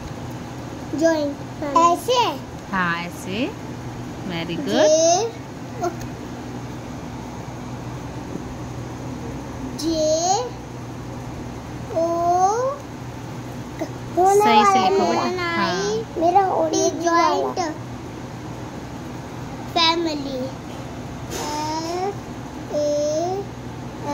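A young boy speaks in a high voice close by.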